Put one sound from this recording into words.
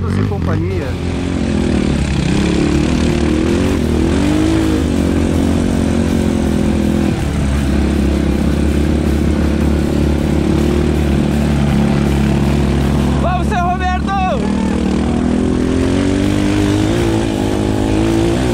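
Quad bike engines drone and rumble along a dirt track.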